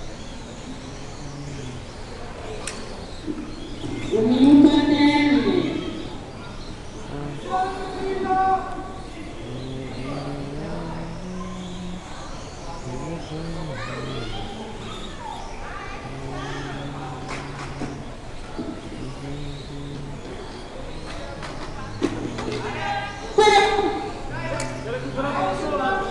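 Small electric toy cars whine as they race around a track.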